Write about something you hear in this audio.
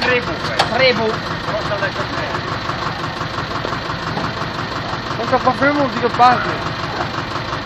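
Men talk loudly nearby, outdoors.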